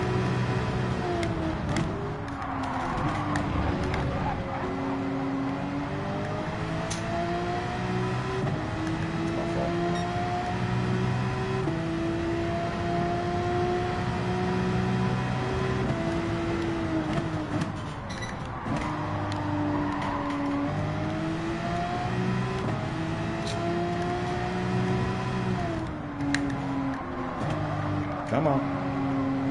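A racing car engine roars, rising in pitch as it speeds up and dropping as it shifts gears and brakes.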